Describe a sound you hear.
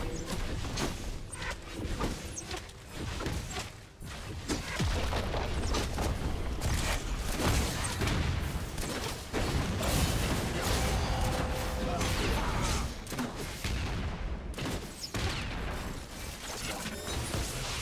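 Video game combat effects crackle and clash, with magic blasts and hits.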